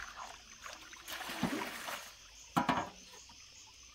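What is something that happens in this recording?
Water pours from a basin and splashes onto the ground.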